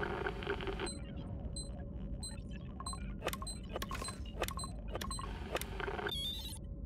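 An electronic device beeps in a quick, even rhythm.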